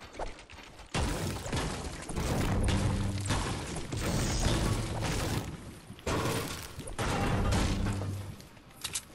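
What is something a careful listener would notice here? A pickaxe strikes hard surfaces with loud repeated thuds and cracks.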